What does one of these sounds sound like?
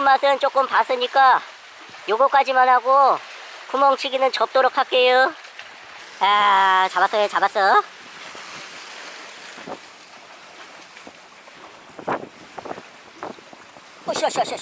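Waves wash and splash against rocks.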